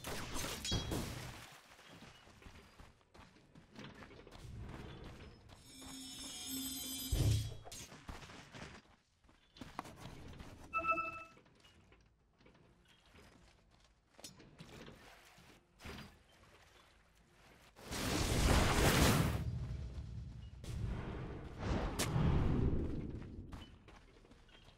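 Video game spell effects whoosh and crackle in short bursts.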